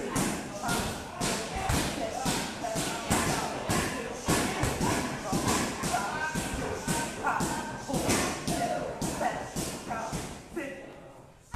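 Knee strikes thud into Thai pads in quick succession.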